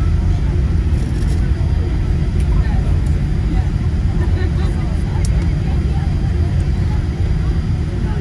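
Turbofan jet engines rumble as heard from inside an airliner cabin rolling down the runway after landing.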